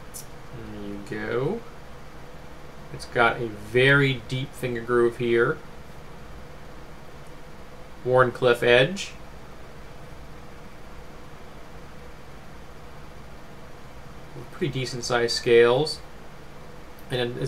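A middle-aged man talks calmly and close to a microphone, in short bursts with pauses.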